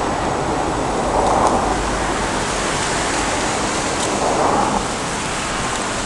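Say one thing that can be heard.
Cars pass by on a road.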